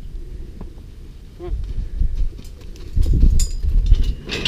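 A cow's hooves thud on dirt.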